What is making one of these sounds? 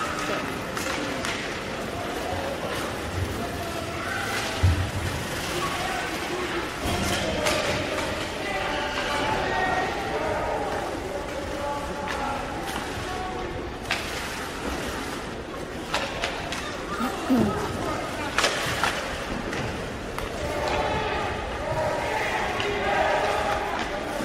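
Skates scrape across ice in a large echoing arena.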